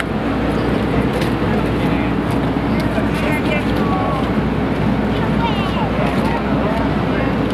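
A crowd of men and women chatters nearby in a large echoing hall.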